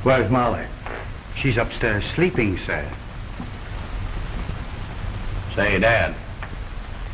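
A young man speaks calmly in a low voice, close by.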